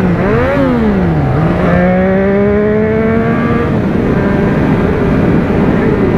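Wind rushes past the rider at speed.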